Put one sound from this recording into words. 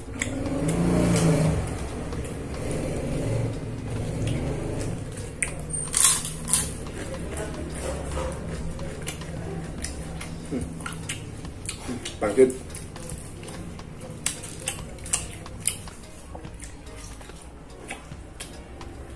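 A man chews food noisily close by.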